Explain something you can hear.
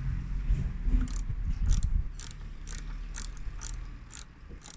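A ratchet wrench clicks rapidly as it turns a bolt.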